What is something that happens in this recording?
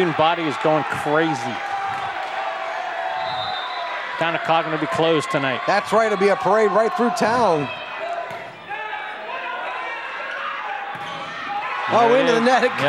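A large crowd chants and cheers loudly in an echoing hall.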